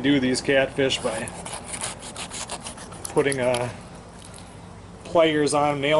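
A knife scrapes and cuts through a fish on a wooden board.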